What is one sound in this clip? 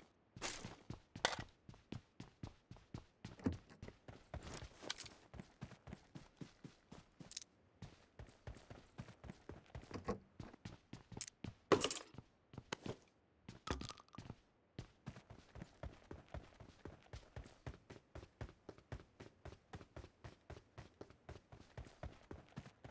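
Quick footsteps thud steadily on wood and ground.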